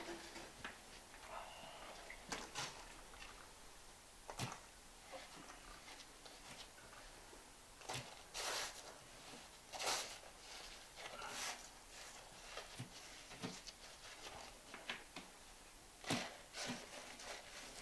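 Hands scrape and pat gritty wet mortar in short bursts.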